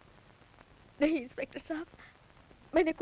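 A woman speaks with emotion nearby.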